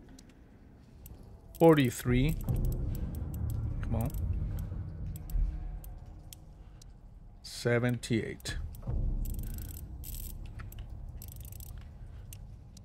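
A safe's combination dial clicks softly as it turns.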